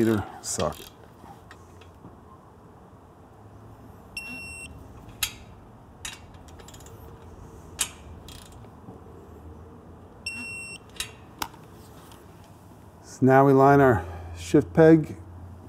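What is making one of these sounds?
A ratchet wrench clicks as it tightens a bolt.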